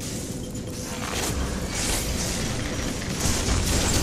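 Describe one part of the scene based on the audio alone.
Magic spells whoosh and burst during a fight.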